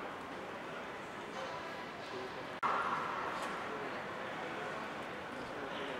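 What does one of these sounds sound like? A crowd murmurs indistinctly in a large echoing hall.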